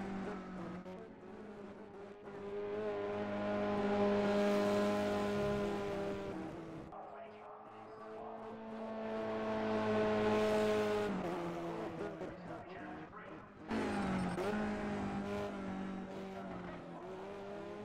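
Racing car engines roar past at high revs, rising and falling as they go by.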